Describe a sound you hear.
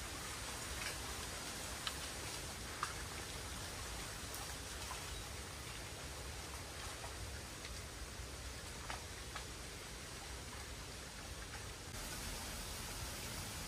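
Leaves rustle softly in a light breeze outdoors.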